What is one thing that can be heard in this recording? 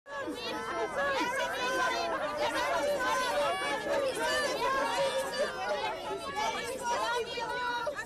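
Many voices chatter and call out at once.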